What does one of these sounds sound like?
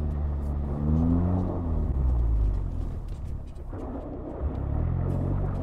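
A car engine hums and revs steadily from inside the cabin.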